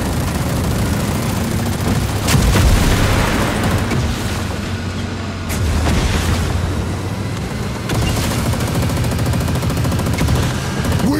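A vehicle engine roars steadily.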